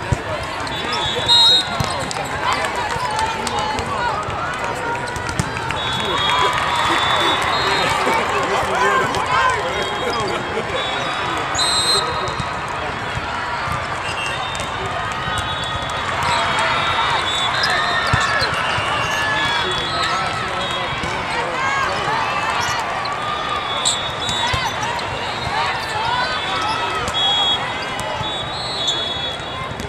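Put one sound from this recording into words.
A crowd of voices chatters and cheers throughout a large echoing hall.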